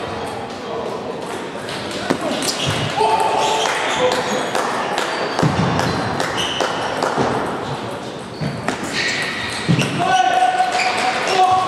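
Sneakers squeak on the floor as players lunge.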